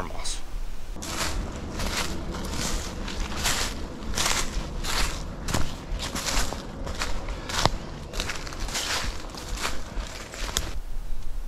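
Footsteps crunch through dry leaves on the forest floor.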